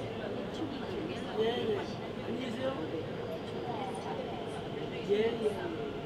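A subway train rumbles along.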